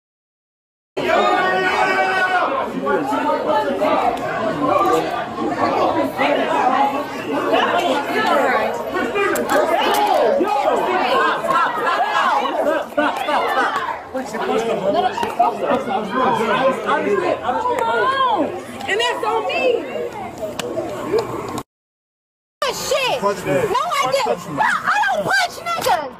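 A crowd of people shout and talk loudly close by, outdoors.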